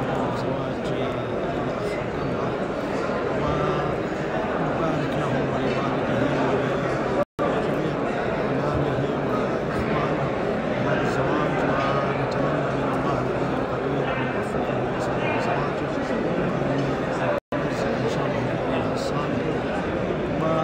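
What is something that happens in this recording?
A middle-aged man speaks steadily and earnestly into a close microphone.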